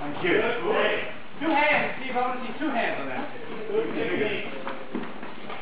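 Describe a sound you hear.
Men talk and call out in a large echoing hall.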